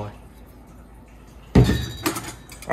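A glass jug is set down on a table.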